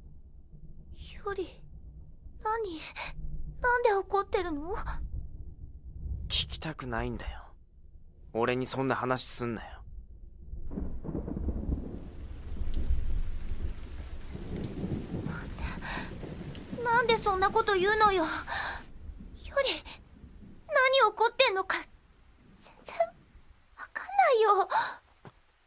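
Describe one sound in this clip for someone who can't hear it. A young woman speaks softly and sadly, close by.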